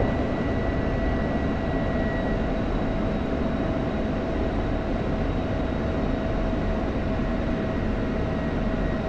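A jet engine roars steadily with a constant whine.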